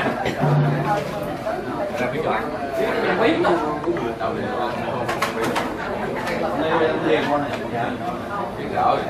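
Several adults talk and murmur nearby.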